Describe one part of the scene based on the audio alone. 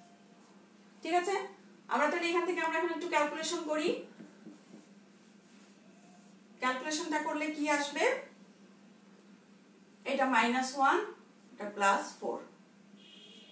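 A woman speaks clearly in short bursts, as if explaining, close by.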